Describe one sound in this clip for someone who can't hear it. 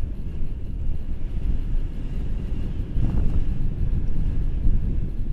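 Wind rushes and buffets loudly against a microphone outdoors.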